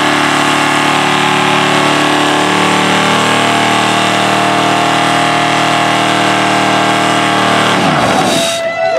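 A car engine roars loudly at high revs, then cuts off.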